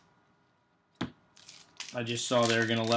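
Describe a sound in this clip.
Cards tap onto a stack.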